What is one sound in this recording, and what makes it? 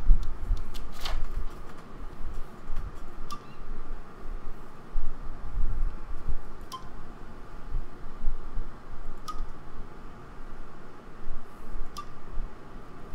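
Short soft clicks sound as menu items are selected.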